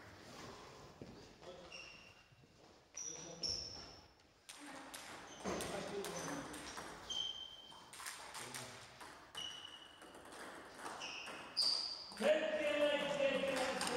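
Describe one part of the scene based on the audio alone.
Table tennis balls click sharply against paddles and tables in an echoing hall.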